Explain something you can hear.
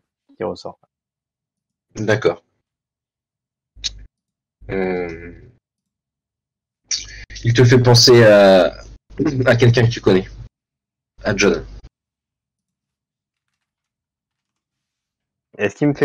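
A young man speaks with animation over an online call, in short bursts.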